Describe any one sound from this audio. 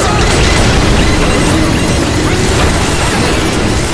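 Weapons fire in rapid bursts.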